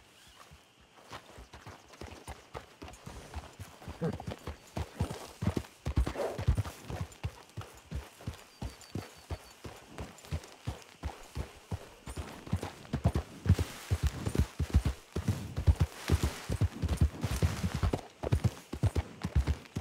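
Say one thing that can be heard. A horse's hooves thud steadily on soft ground, quickening to a trot.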